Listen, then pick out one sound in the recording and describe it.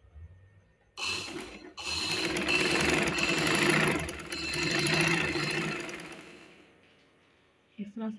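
A sewing machine runs with a fast rattle.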